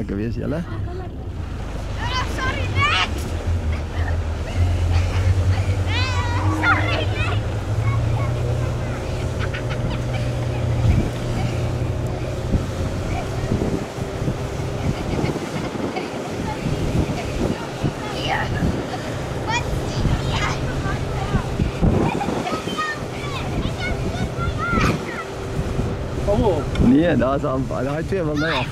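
A board scrapes and hisses over loose sand.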